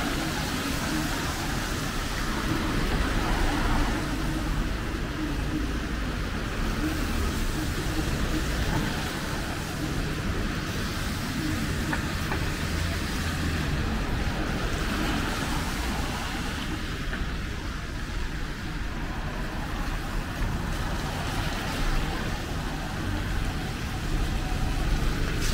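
Traffic hums steadily along a wet city street.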